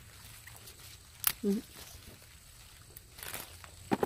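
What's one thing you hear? A pepper stem snaps as a pepper is picked.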